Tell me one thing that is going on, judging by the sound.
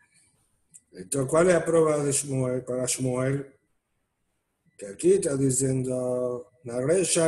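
A middle-aged man speaks calmly and slowly, heard through an online call.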